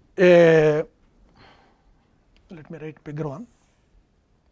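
An elderly man speaks calmly through a microphone in short phrases.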